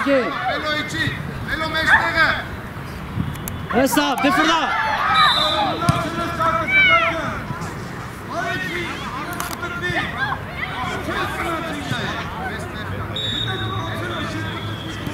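Children shout and call out to each other outdoors.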